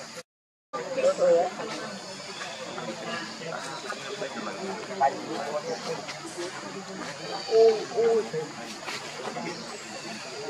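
A small monkey scrambles over stone.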